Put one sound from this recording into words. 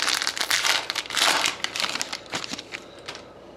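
Foil wrapping crinkles and tears.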